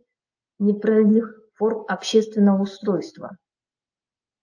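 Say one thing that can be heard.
A woman speaks calmly through a microphone in an online call.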